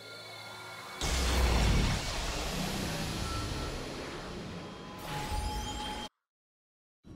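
A loud magical surge roars and whooshes, then fades.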